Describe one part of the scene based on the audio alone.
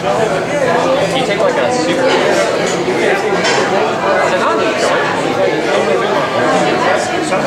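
A second man answers into a microphone, heard through a loudspeaker.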